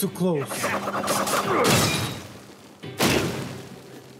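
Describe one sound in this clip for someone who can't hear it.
A heavy blow lands with a crackling burst.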